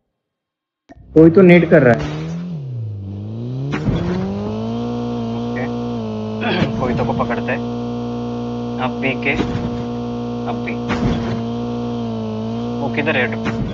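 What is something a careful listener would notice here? A car engine revs up, then drones at a steady pitch.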